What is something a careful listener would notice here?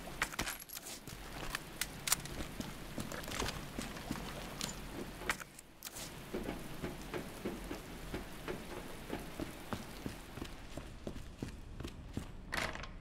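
Footsteps clank on metal walkways.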